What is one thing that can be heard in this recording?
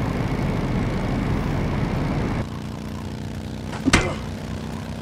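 A motorcycle engine roars at speed.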